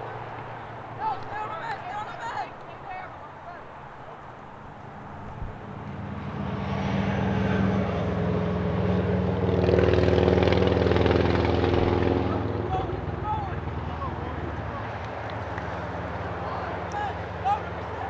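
Young men shout to each other across an open field, some way off.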